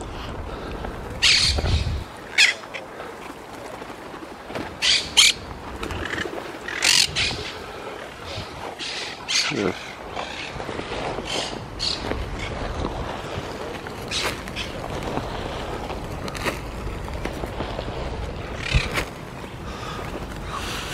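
Pigeons flutter their wings close by.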